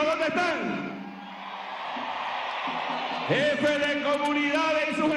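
A large crowd cheers.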